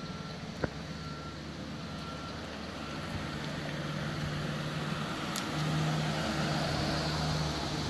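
A car drives up slowly and comes close.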